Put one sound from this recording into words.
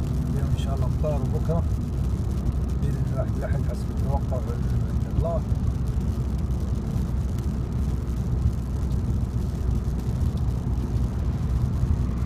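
A car drives steadily along a motorway with a low, constant road rumble.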